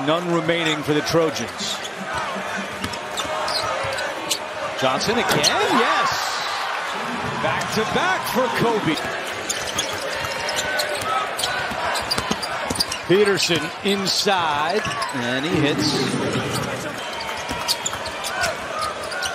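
A large crowd roars and cheers in a big echoing arena.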